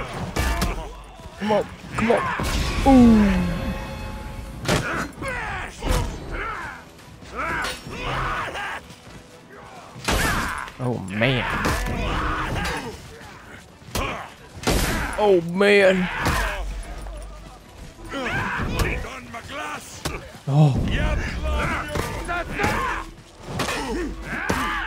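Warriors grunt and shout as they fight.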